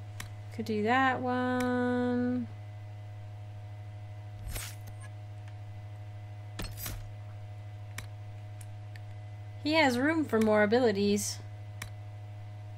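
Short interface clicks sound as menu options change.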